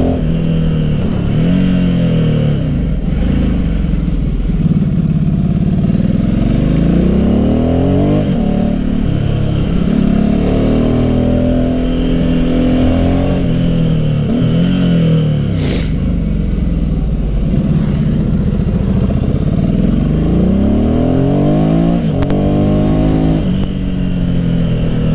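Wind rushes past a motorcycle rider.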